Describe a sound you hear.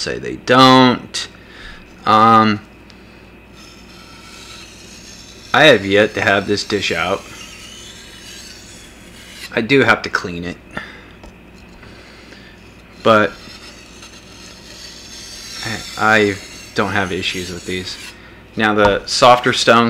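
A blade scrapes back and forth across a wet sharpening stone.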